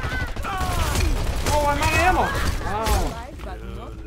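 A gun fires rapid shots close by.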